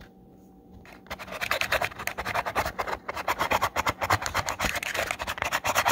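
A fingertip rubs and scratches across a cardboard box.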